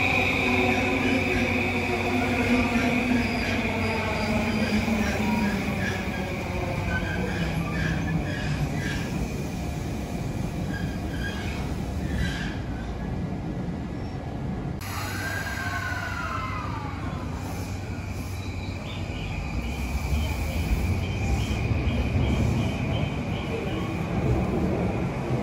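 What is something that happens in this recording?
An electric train pulls away with a whining motor that shifts in pitch.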